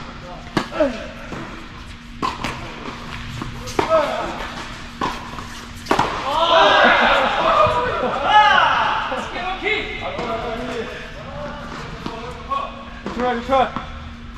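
Tennis rackets hit a ball back and forth in a large echoing hall.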